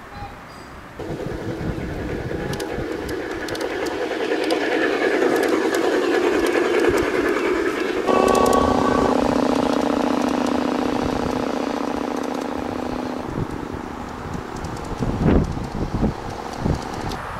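A model train rumbles and clatters along its track.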